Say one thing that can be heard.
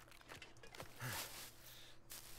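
Dry twigs rustle and snap as berries are picked from a bush.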